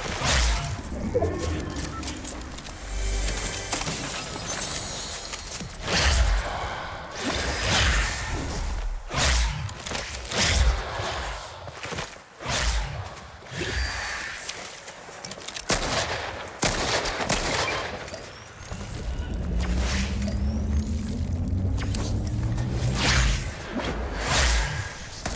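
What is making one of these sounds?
Quick footsteps patter over hard ground.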